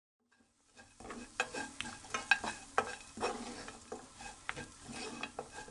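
Small dried fish and nuts sizzle and rustle as they are stirred in a pan.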